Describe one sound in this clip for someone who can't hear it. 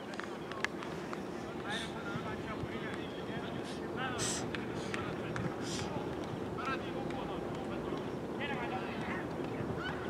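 A crowd of spectators chatters outdoors nearby.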